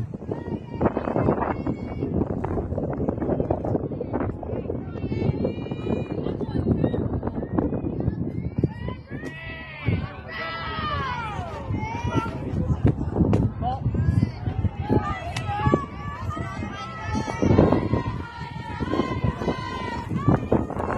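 Young women shout and chant encouragement outdoors.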